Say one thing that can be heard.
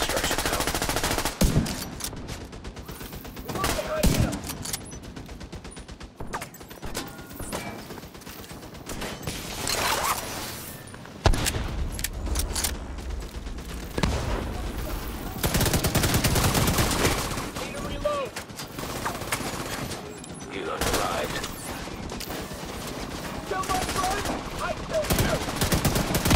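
Gunshots crack repeatedly in a short battle.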